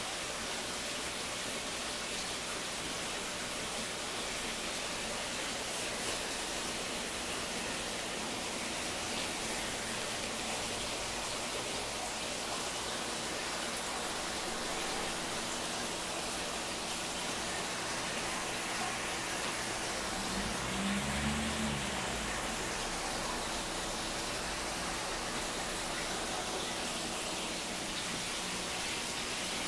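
An aquarium pump hums steadily.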